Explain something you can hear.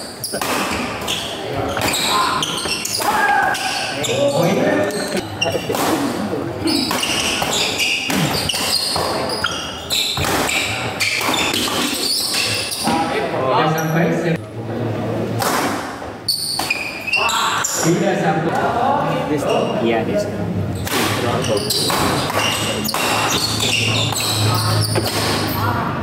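Shuttlecocks are struck sharply with rackets.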